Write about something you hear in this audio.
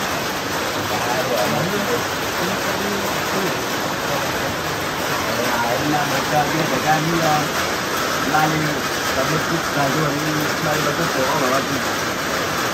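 Young men talk casually nearby.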